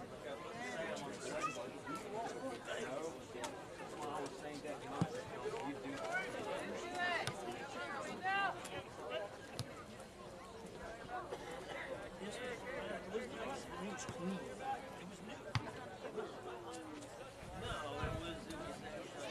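Players shout and call to each other across an open field.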